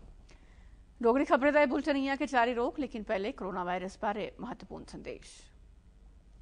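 A woman reads out calmly into a microphone.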